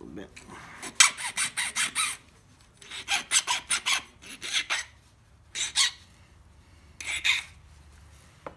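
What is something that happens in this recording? A metal file rasps back and forth across a hard edge in quick strokes.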